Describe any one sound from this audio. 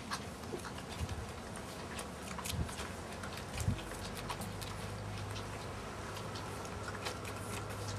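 Fox terrier puppies suckle and squeak while nursing.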